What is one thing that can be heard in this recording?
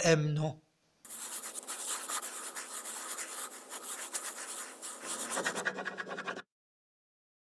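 A quill pen scratches across paper.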